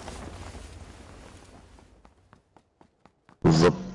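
Footsteps run quickly over gravel.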